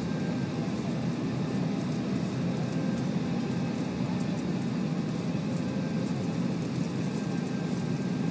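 An aircraft's engines hum steadily.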